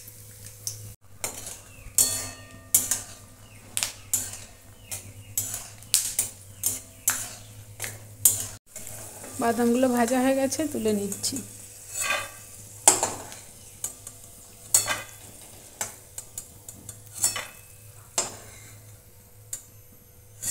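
A metal spatula scrapes and taps against a wok.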